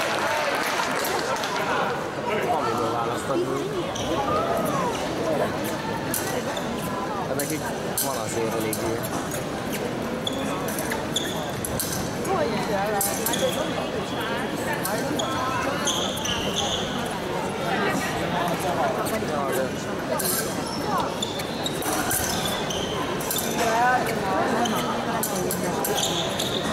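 Fencers' feet tap and squeak on a hard floor.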